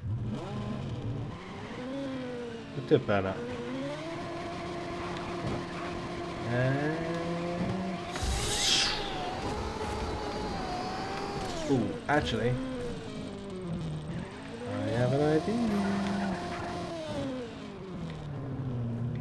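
A racing car engine whines and revs up and down.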